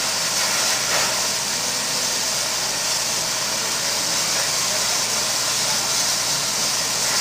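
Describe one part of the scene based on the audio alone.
A steam locomotive hisses steadily as it idles.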